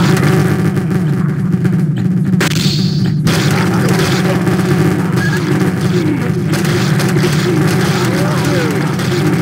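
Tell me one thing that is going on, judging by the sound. A heavy gun fires rapid shots.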